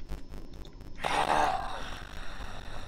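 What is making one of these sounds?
A whooshing attack effect sounds in a game.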